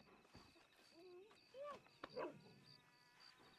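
A dog whines softly.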